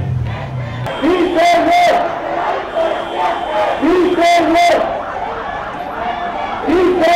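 A large crowd chants in unison outdoors.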